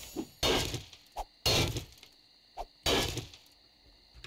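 A pickaxe strikes the ground with heavy thuds.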